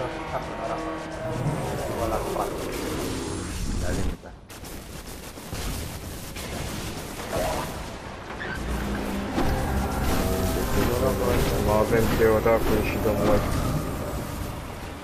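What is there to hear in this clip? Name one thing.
A sword swings and clashes with crackling energy.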